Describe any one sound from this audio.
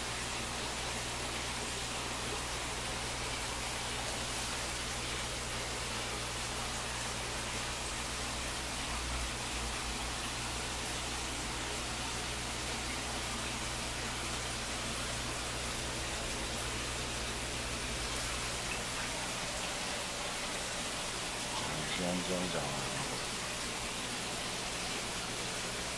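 A small pump hums steadily.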